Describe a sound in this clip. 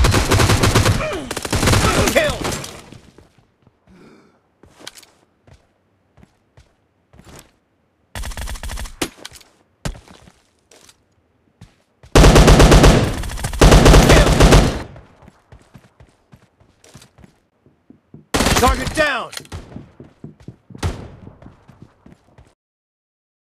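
Automatic gunfire rattles in loud, rapid bursts.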